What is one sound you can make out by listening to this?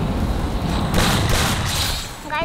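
A grenade explodes with a loud boom.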